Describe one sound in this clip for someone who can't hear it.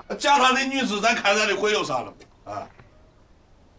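A middle-aged man speaks close by with rising animation.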